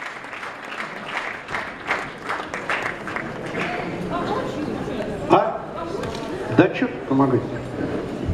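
An elderly man speaks calmly into a microphone in an echoing hall.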